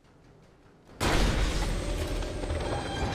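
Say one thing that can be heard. An explosion bursts against a tower.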